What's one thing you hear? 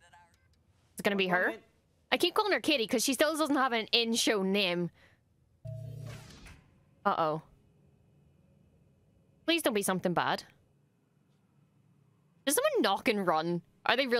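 A young woman talks with animation into a close microphone, in bursts.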